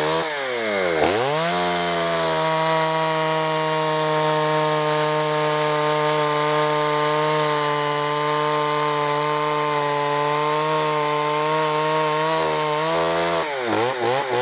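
A chainsaw cuts through a log.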